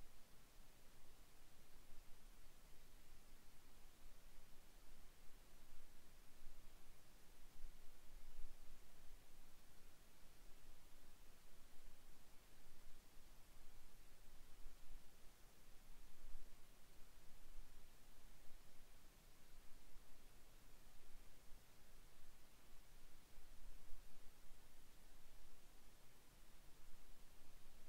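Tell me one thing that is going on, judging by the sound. Tyres rumble over rough, rocky dirt.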